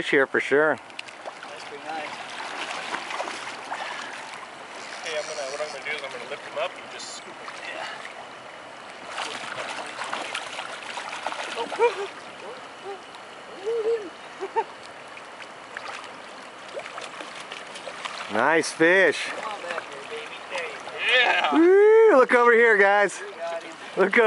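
A river rushes steadily.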